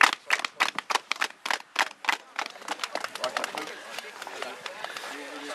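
A group of people claps hands.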